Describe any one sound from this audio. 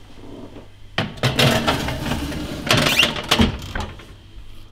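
An oven door creaks open.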